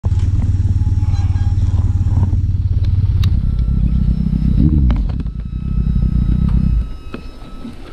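A motorcycle engine idles with a deep, steady rumble close by.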